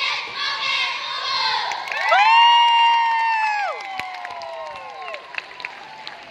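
A group of young women sings together loudly, with long held notes, through loudspeakers.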